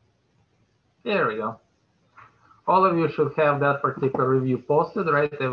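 A man speaks calmly through a microphone on an online call.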